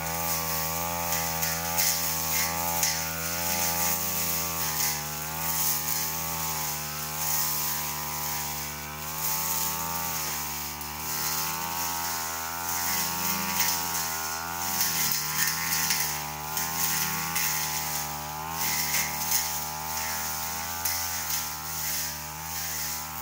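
A brush cutter's blade slashes through grass and weeds.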